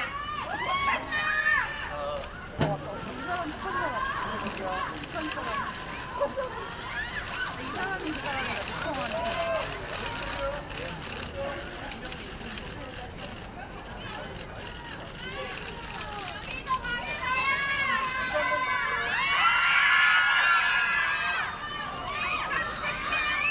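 A crowd of young women shout and scream excitedly outdoors.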